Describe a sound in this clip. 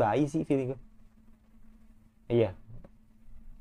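A young man speaks briefly and with animation, close to a microphone.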